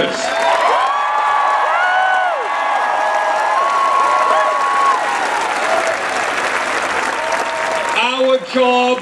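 A crowd cheers and shouts loudly in a large space.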